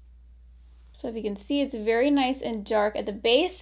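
A young woman speaks calmly, close to the microphone.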